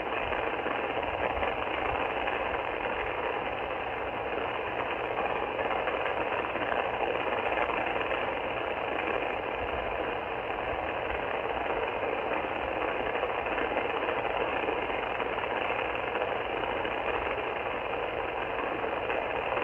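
Steady static hisses from a radio receiver's loudspeaker.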